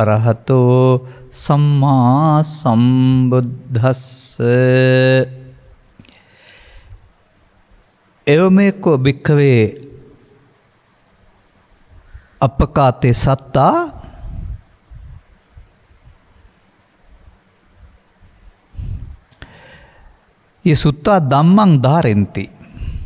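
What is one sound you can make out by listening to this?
An elderly man chants slowly into a microphone, in long melodic phrases with pauses between them.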